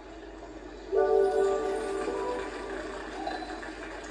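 A short cheerful game tune plays.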